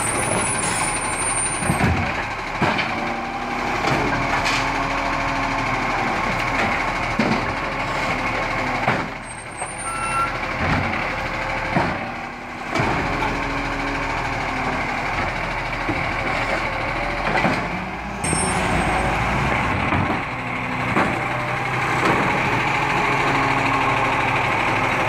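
A garbage truck engine rumbles and whines steadily close by.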